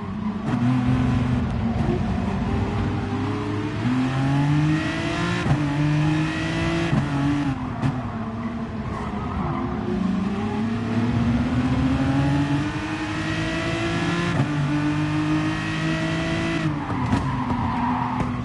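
Other race car engines roar close by.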